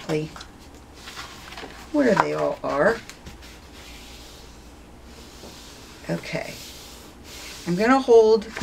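Stiff paper rustles and slides against a hard surface.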